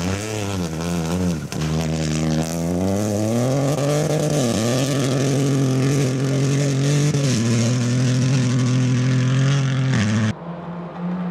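A rally car engine roars loudly at high revs and shifts through gears.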